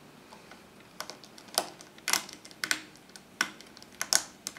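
A screwdriver clicks and scrapes against metal screws.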